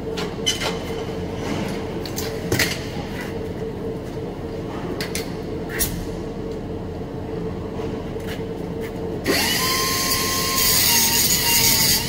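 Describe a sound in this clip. A fume extractor fan hums steadily.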